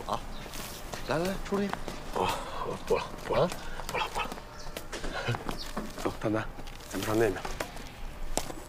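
A second young man answers casually nearby.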